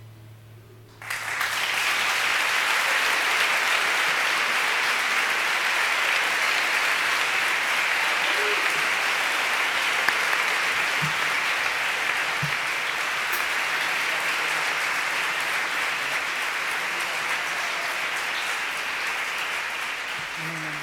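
A large audience applauds and cheers loudly in an echoing hall.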